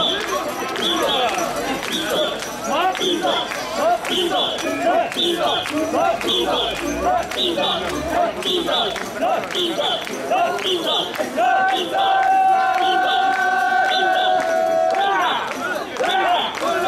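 A large crowd of men chants loudly in a steady rhythm outdoors.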